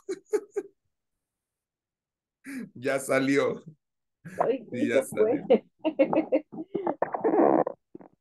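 A man laughs over an online call.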